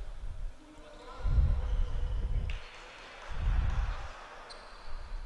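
A ball bounces on a wooden court in a large echoing hall.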